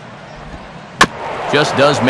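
A baseball smacks sharply into a catcher's mitt.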